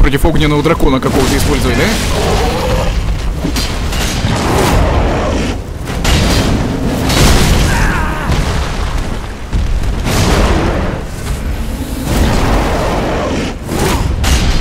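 A huge beast roars and growls loudly.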